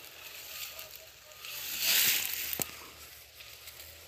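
Dry grass rustles as a man pushes through it.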